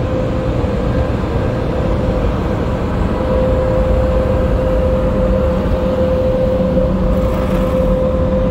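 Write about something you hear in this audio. An air conditioner hums and drones steadily up close.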